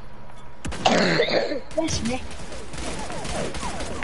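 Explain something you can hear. A magic blast bursts with a sizzling crackle.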